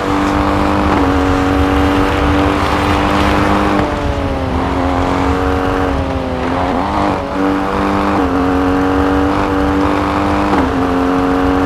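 A rally SUV's engine drops in pitch as gears shift.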